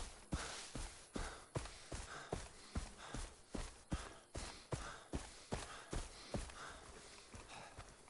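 Footsteps thud quickly and steadily through grass.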